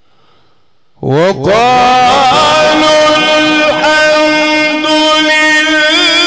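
An elderly man chants loudly into a microphone in long, wavering drawn-out notes.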